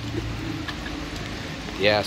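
Liquid drips steadily onto the ground.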